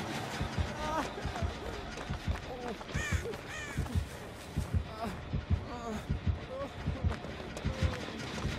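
Footsteps thud quickly on soft ground.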